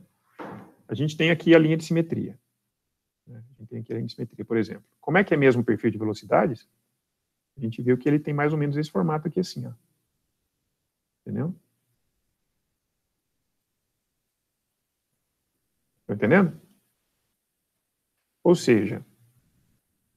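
A man speaks calmly through a microphone, explaining with pauses.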